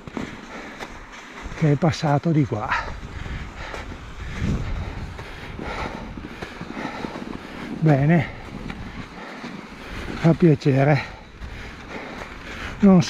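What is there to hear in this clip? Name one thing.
Bicycle tyres crunch and rustle over packed snow.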